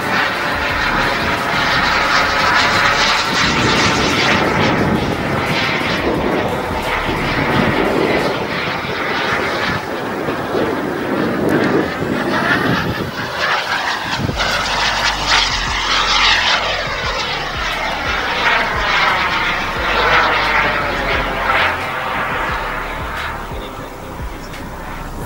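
A jet engine roars loudly overhead, its tone sweeping and swirling as it passes.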